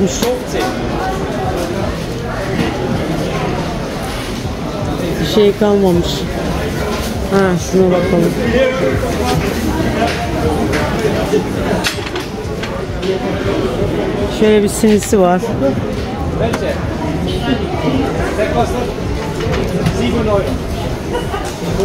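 Many people chatter in a busy crowd outdoors.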